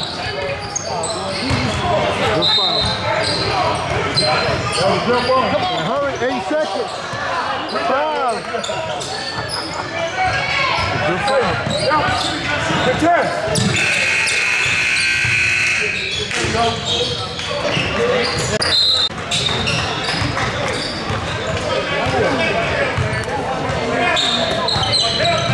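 Young men call out and shout to each other in a large echoing gym.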